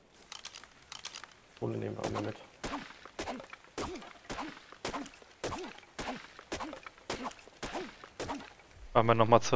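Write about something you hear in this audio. A stone hatchet chops against a tree trunk in quick knocks.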